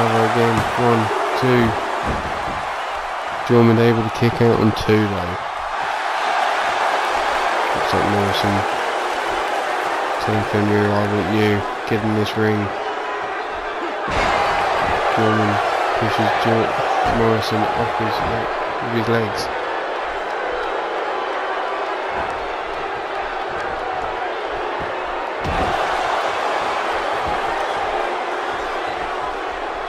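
A large crowd cheers and roars steadily in a big echoing arena.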